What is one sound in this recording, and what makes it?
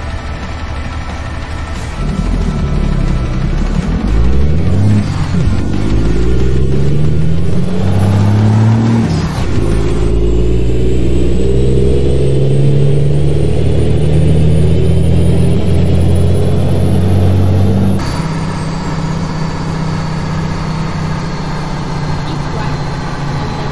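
A truck engine rumbles and revs up through the gears.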